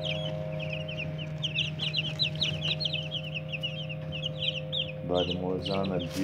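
Many chicks peep rapidly and continuously close by.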